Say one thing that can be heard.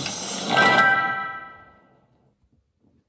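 A tablet game plays a bright shimmering chime that rings out and fades.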